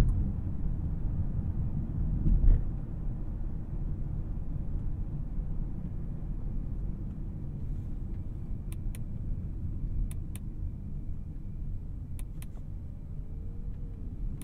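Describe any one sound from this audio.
Tyres roll on asphalt with a low rumble heard from inside a car.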